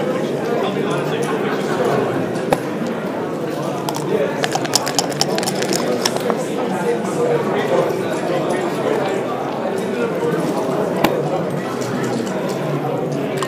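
Plastic game pieces click as they are moved on a board.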